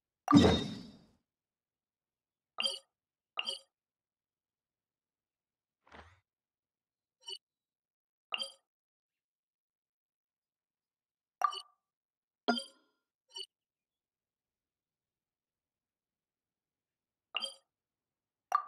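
Soft menu chimes and clicks sound again and again.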